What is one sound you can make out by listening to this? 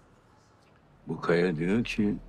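An older man speaks in a low voice, close by.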